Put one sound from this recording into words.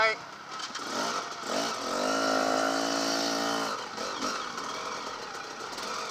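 A dirt bike engine roars close by as the bike pulls away.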